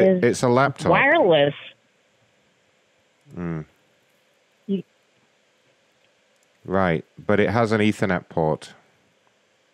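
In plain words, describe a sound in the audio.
A man speaks with animation into a microphone, in short bursts.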